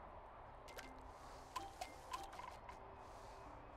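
Short bright chimes ring out in quick succession as pieces of fruit are picked up.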